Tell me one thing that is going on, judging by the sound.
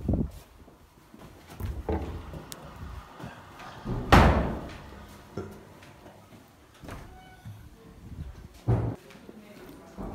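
Footsteps thud along a carpeted floor.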